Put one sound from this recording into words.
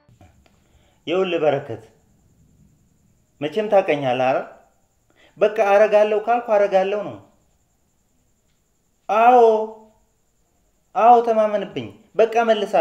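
A man speaks tensely into a phone, close by, in short bursts.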